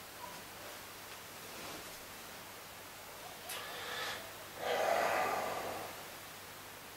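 Bedding rustles as a man shifts his legs.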